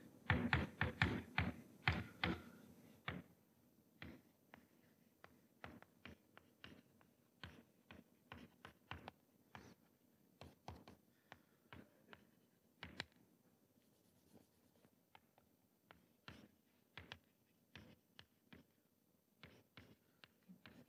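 Chalk taps and scrapes on a blackboard in short bursts.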